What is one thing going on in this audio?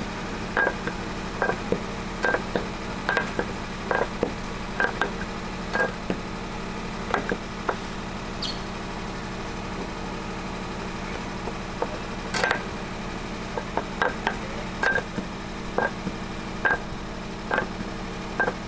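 A wooden rolling pin knocks and clacks on a wooden board in a quick rhythm.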